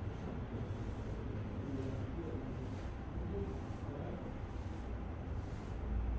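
A felt eraser rubs across a chalkboard.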